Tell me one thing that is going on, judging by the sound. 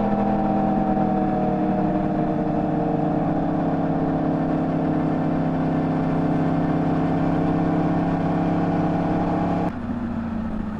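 A motorcycle engine drones steadily at speed.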